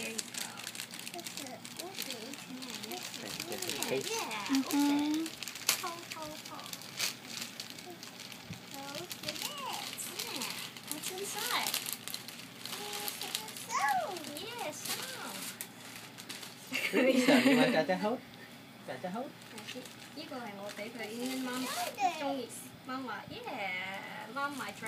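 Plastic wrapping crinkles and rustles as it is pulled open.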